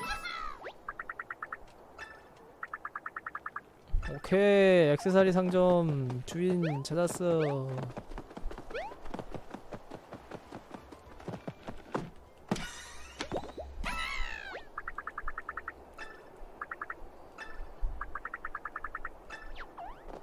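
Quick chirping blips sound in a rapid run, like text being typed out in a game.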